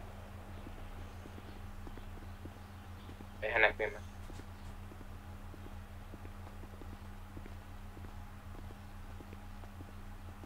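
Footsteps fall on pavement.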